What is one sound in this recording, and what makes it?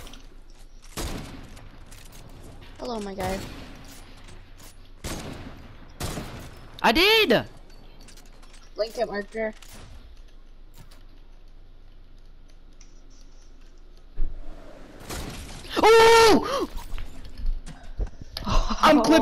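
Game gunshots crack in short bursts.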